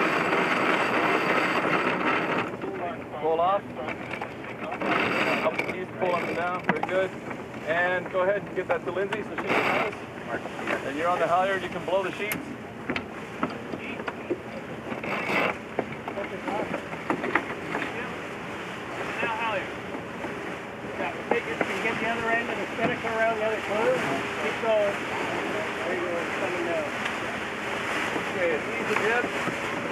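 Water splashes and rushes along a boat's hull.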